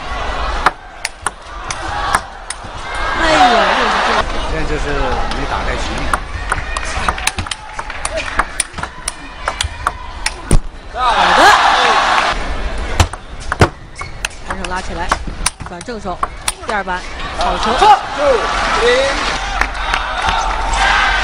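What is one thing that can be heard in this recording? A table tennis ball clicks back and forth off paddles and the table.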